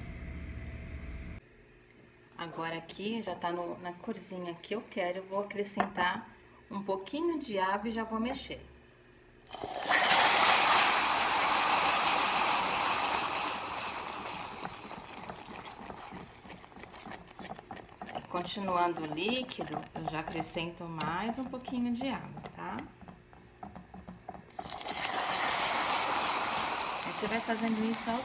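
A spatula scrapes and stirs inside a metal pot.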